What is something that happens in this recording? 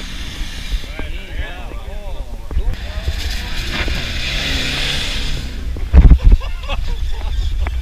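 A truck engine roars as it climbs a sandy slope.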